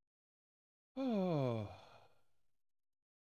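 A young man lets out a long, falling sigh.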